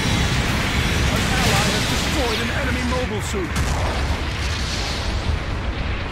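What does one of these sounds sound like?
Heavy blasts and explosions rumble loudly.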